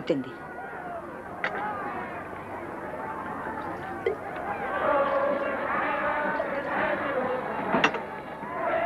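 Glasses clink on a tray.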